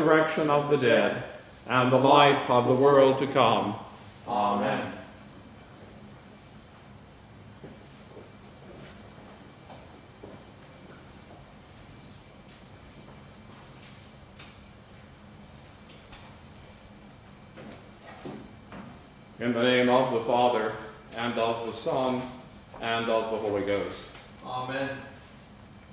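An elderly man chants aloud in a quiet, echoing room.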